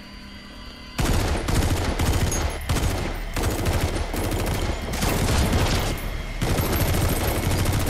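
Automatic gunfire rattles loudly and rapidly.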